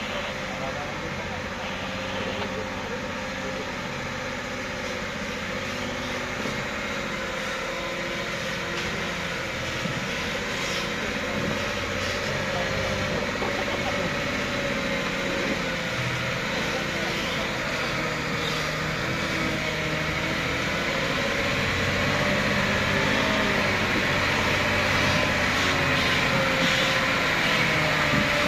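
A truck engine rumbles and labours as the truck slowly crawls closer over a muddy track.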